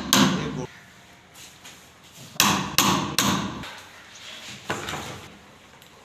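A hammer strikes a wood chisel cutting into a wooden door frame.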